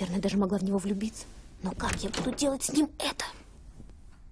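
A young woman speaks in a strained voice close by.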